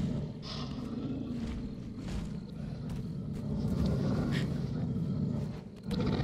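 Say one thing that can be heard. A huge beast growls with a deep, low rumble.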